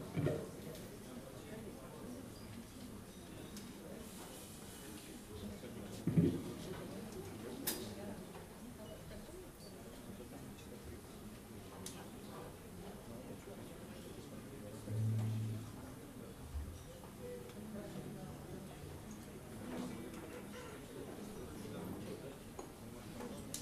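Electric guitars play.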